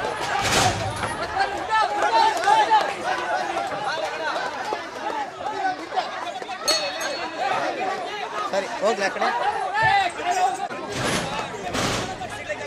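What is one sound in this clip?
Several men talk outdoors nearby.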